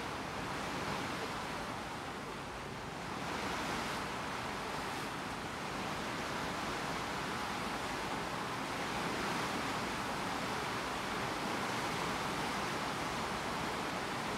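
Water washes along a moving ship's hull.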